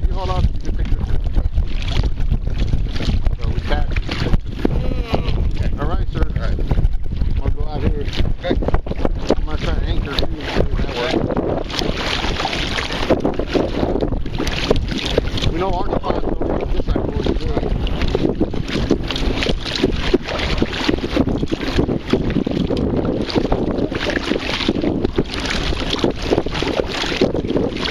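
Small waves lap against a kayak's hull.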